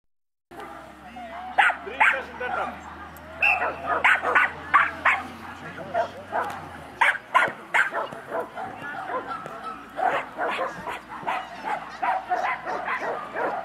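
A woman calls out commands to a dog outdoors.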